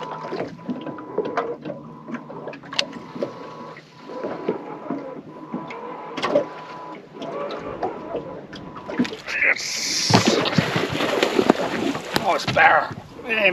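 A fishing reel clicks and whirs as it is wound.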